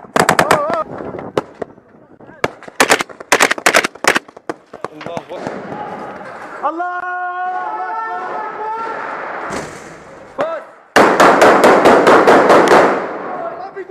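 A rifle fires loud rapid bursts close by.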